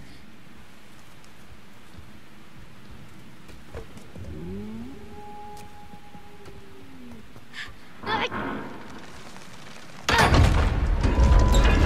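A boy's footsteps tap on stone.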